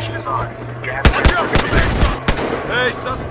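A rifle fires several loud, sharp shots.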